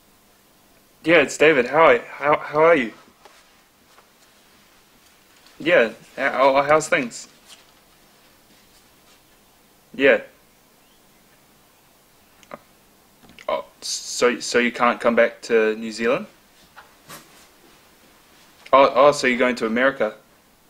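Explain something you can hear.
A young man talks calmly into a phone, close by.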